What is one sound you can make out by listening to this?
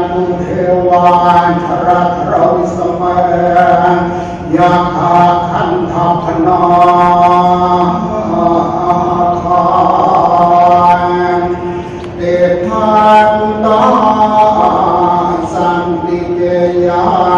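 A large crowd of men and women chants together in a steady drone, echoing in a large hall.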